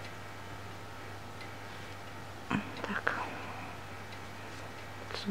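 Hands softly rustle and rub a piece of crocheted fabric.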